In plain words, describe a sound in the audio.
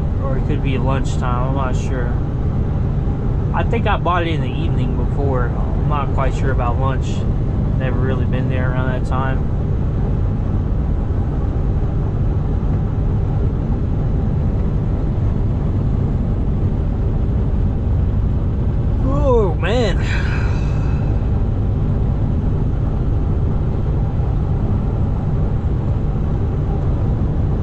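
A truck engine rumbles steadily while driving at speed.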